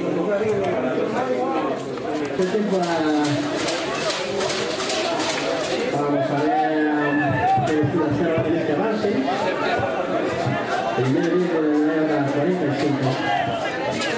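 Men call out from the sideline.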